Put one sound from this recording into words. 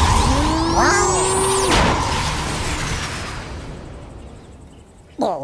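A flying saucer hums with a warbling electronic tone and whooshes away, fading into the distance.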